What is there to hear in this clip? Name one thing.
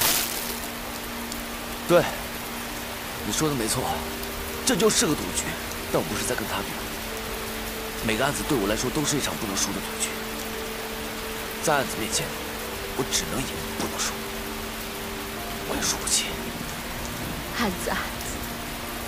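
A young man speaks tensely and quietly, close by.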